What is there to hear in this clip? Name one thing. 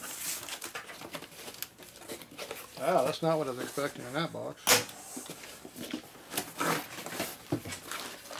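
Paper envelopes rustle as they are pulled from a box.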